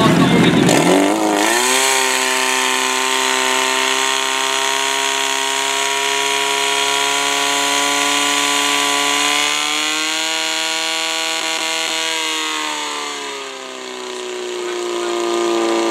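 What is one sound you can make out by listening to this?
A portable fire pump engine revs up and runs at high speed.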